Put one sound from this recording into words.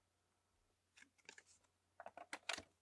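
A plastic card clicks and rattles as it slides into a toy slot.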